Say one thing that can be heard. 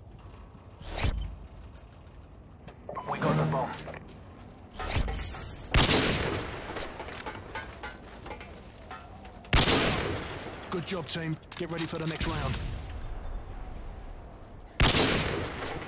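A rifle fires loud single shots that echo briefly.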